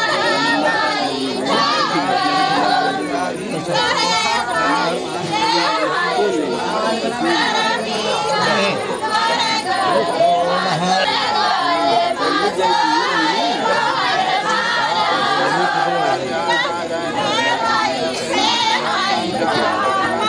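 Men's voices chant and talk close by, in a busy crowd.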